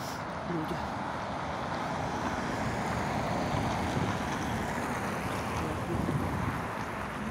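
A car drives by on the street nearby.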